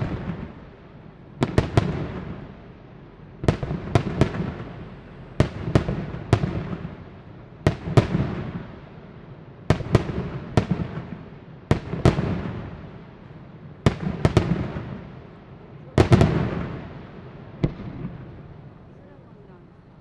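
Fireworks explode with loud booming bangs that echo and rumble away.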